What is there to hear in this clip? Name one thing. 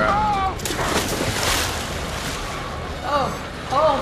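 Water splashes as a body falls into it.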